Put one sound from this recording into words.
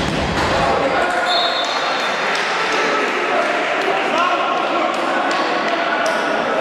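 Sneakers squeak sharply on a hall floor.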